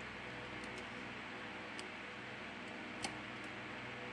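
A small circuit board clicks softly into place in a phone frame.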